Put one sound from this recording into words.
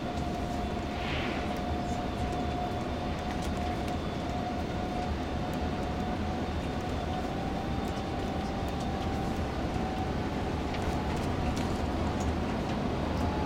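A bus engine hums steadily while driving along a road.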